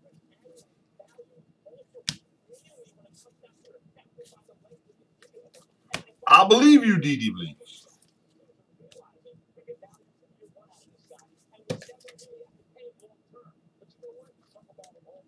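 Trading cards rustle and tap as they are handled.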